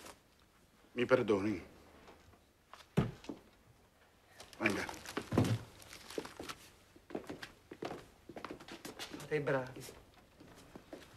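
A middle-aged man speaks firmly.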